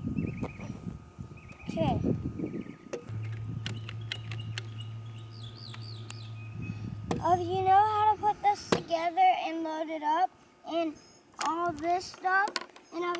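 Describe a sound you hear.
Plastic parts of a toy gun click and rattle.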